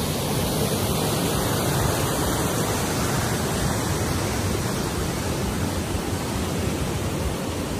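Water flows and rushes steadily along a channel outdoors.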